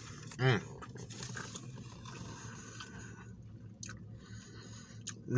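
Paper wrapping rustles and crinkles.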